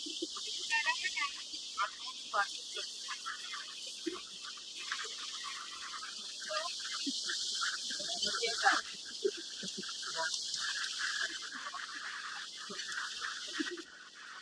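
Wildebeest grunt and bellow in a herd.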